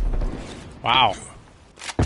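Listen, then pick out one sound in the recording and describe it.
Water splashes as bullets hit it.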